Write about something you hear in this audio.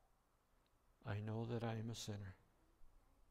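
An older man speaks calmly, heard through a microphone in a large room.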